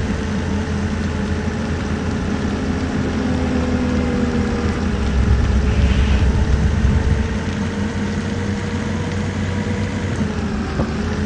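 A bus engine hums steadily as the bus drives along a road.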